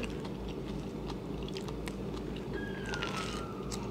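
A young woman bites into crisp fruit with a crunch.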